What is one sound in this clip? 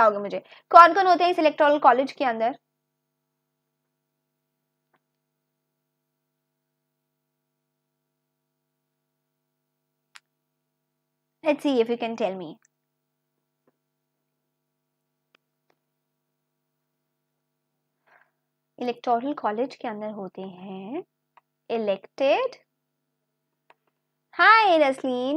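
A young woman speaks calmly into a close microphone, with long pauses.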